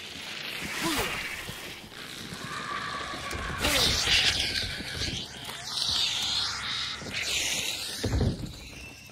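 A swarm of insects buzzes loudly.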